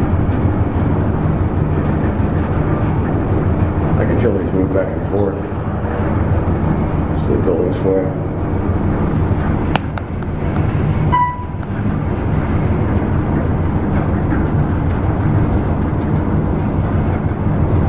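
A lift hums and rumbles steadily as it glides down.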